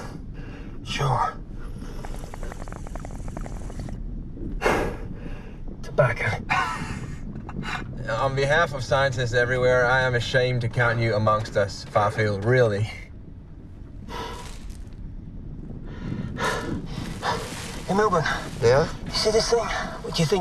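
A man speaks over a helmet radio.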